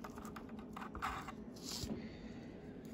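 A small plastic part clicks and rattles as it is handled.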